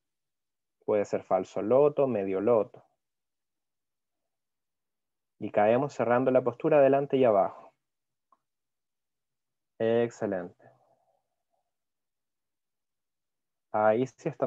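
A man gives calm instructions over an online call, in short phrases with pauses.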